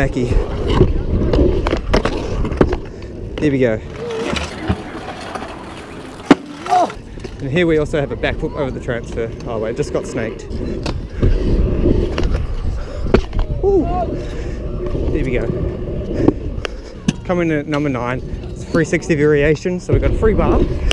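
Scooter wheels roll and rumble on concrete.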